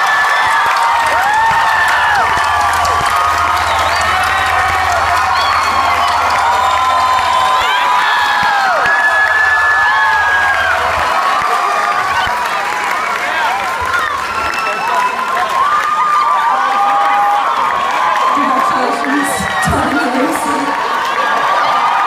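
A large crowd cheers and screams loudly.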